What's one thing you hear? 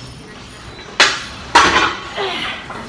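Heavy weight plates clank on a machine.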